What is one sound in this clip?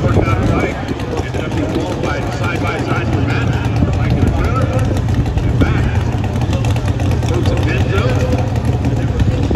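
A motorbike engine idles nearby.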